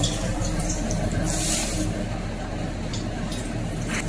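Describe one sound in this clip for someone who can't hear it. Hot oil sizzles as it is poured onto food.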